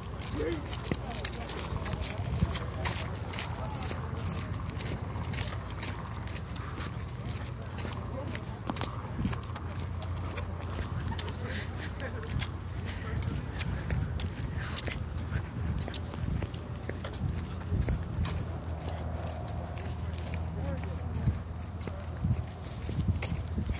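Footsteps scuff on pavement.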